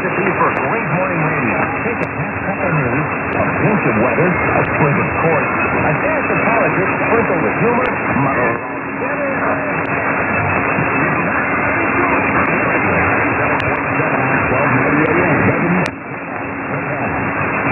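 A radio receiver hisses with rough static and warbling tones.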